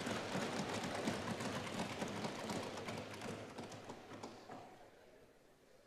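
An audience applauds in a large hall and the clapping fades.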